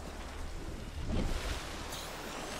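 Bubbles rush and gurgle underwater.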